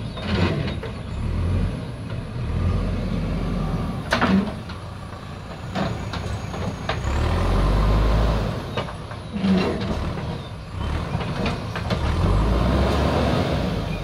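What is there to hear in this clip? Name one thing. A backhoe loader's diesel engine rumbles close by, revving up and down.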